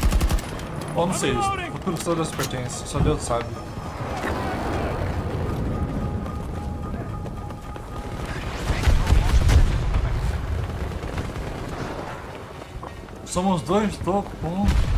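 A young man talks with animation over a microphone.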